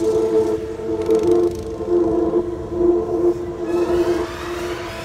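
Go-kart engines buzz and whine around a track.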